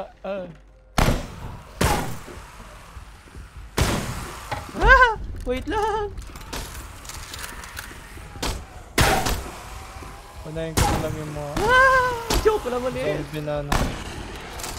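Gunshots crack sharply, several times.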